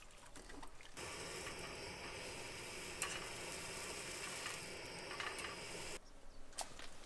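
A gas stove hisses steadily.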